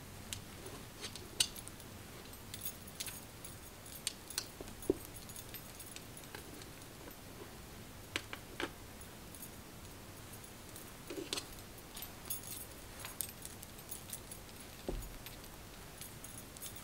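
Bracelets clink and jingle softly on a wrist.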